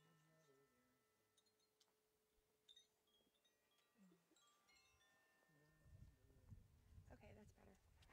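Singing bowls ring with long, overlapping tones.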